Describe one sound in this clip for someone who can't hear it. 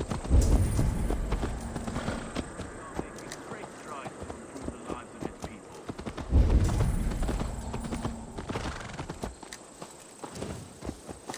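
Footsteps tread through grass and mud.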